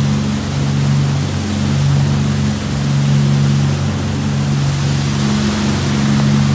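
A boat's engine drones steadily.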